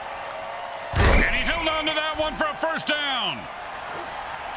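Football players collide with a heavy thud.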